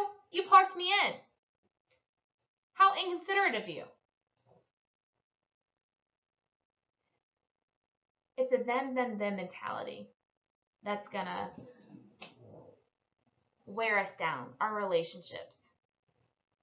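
A woman speaks into a microphone, explaining with animation in short bursts.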